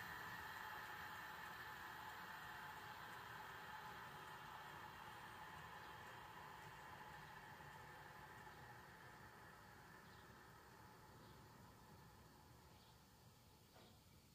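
A large electric motor whirs and slowly winds down.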